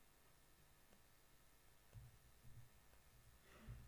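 Footsteps thud softly on a carpeted floor in a large quiet hall.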